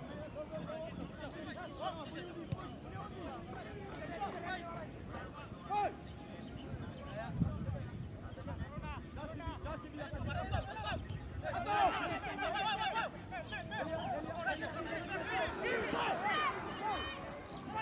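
Spectators close by talk and call out.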